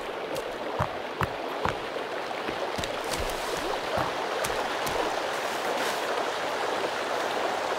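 Quick footsteps run over dirt and rock.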